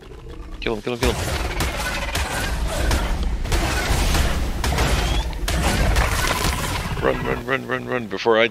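A giant scorpion strikes and stings repeatedly with heavy thuds.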